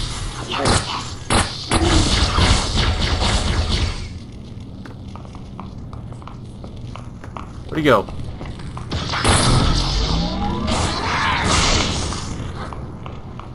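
An energy rifle fires rapid bursts of bolts.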